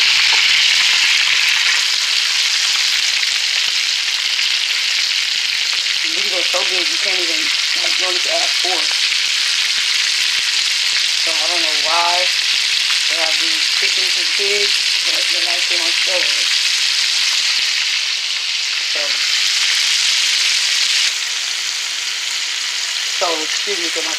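Oil sizzles and crackles loudly as food fries in a pan.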